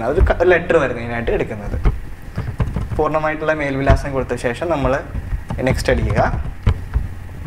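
A young man speaks calmly into a close microphone.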